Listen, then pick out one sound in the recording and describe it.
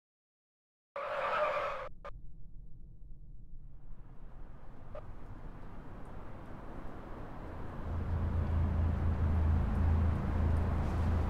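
A car engine hums and grows louder as it drives.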